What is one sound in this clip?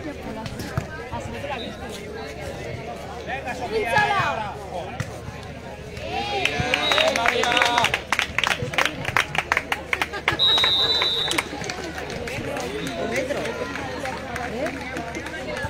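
A volleyball is struck with a dull slap of hands.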